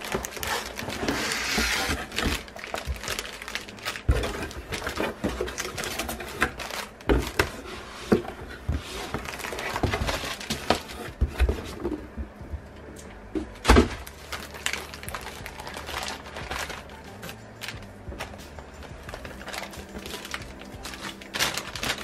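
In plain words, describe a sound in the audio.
Papers and plastic wrapping rustle as they are shuffled.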